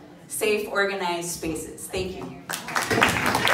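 An older woman speaks through a microphone in a large room.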